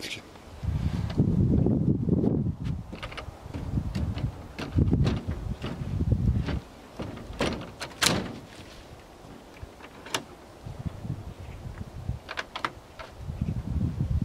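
A wooden window frame knocks and rattles as it is lifted.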